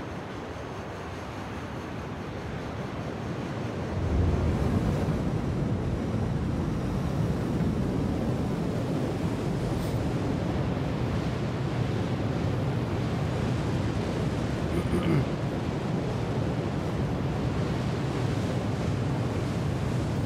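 A spacecraft engine hums with a deep, steady rumble that swells louder early on.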